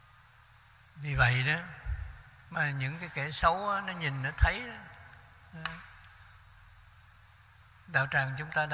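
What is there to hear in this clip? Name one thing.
An elderly man speaks calmly and slowly into a microphone, with pauses.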